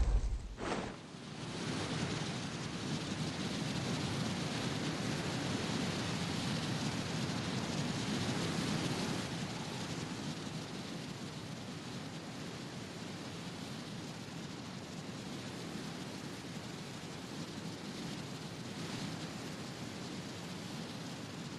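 Wind rushes loudly past in a steady roar during a fast fall through the air.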